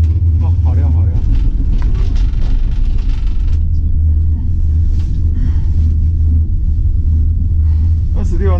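A gondola cabin rumbles steadily as it rides along its cable.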